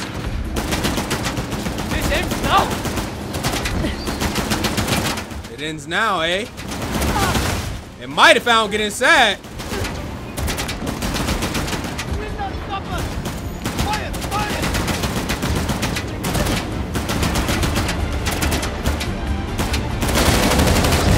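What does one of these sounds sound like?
Gunshots crack rapidly.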